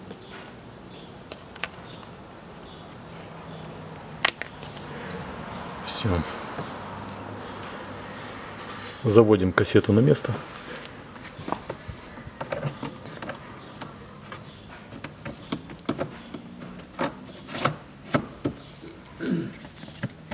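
Plastic parts click and rattle.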